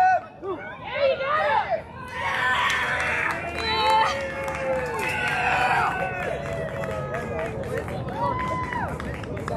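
Young boys shout and cheer across an open field.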